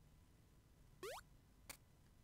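A short rising chime sounds from a video game.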